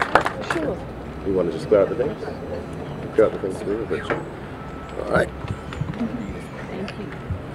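Several adults chat nearby after the applause.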